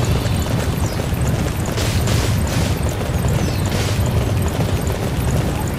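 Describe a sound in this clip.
Horse hooves gallop steadily over dirt.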